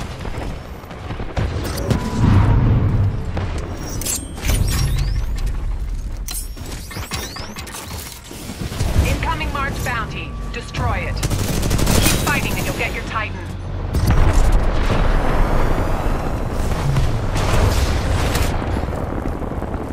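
Rifle gunfire crackles in rapid bursts.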